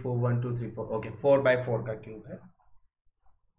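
A man speaks into a microphone, explaining with animation.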